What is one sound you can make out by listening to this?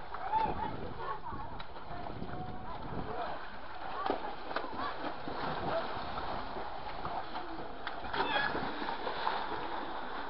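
Children splash and jump into a pool.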